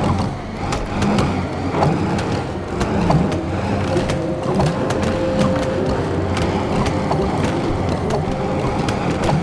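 Small balls clatter and bounce on wood.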